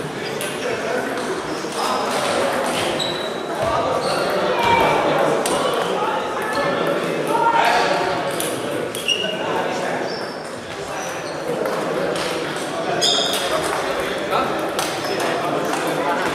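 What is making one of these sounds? Table tennis balls click on tables and paddles, echoing in a large hall.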